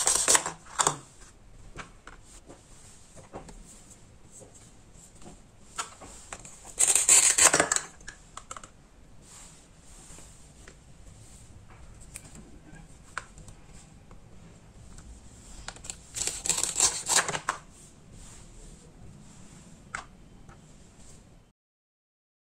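Plastic toy pieces clack and rattle as they are handled.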